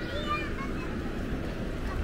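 A pram's wheels roll over paving stones.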